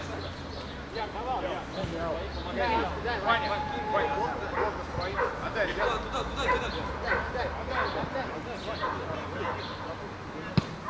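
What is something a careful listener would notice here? Men call out to each other across an open field.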